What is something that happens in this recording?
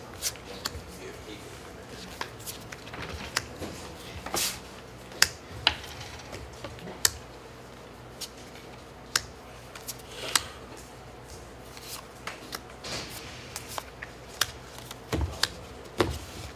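Cards are shuffled and riffled in a hand.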